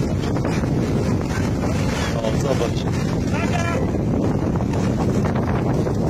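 Surf breaks and washes onto a sandy shore.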